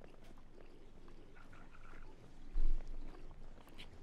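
Hands and feet scrape and grip on rock during a climb.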